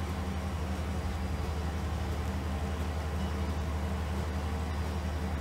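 A combine harvester engine drones steadily and low.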